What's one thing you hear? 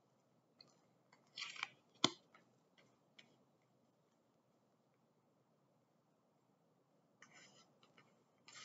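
Playing cards slide and tap on a cloth-covered table.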